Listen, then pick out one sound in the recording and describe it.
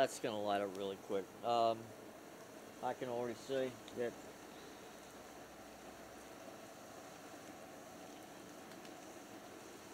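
A wood fire crackles and hisses softly.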